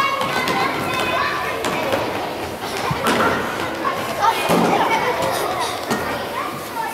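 Young children shout and call out excitedly in a large echoing hall.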